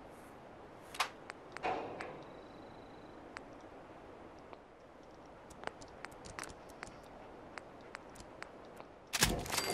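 Soft menu clicks tick as options are selected.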